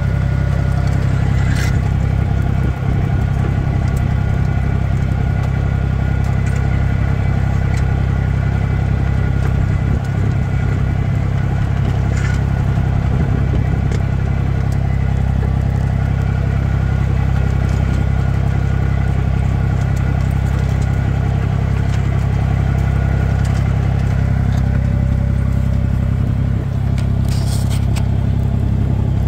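A tractor engine drones loudly and steadily.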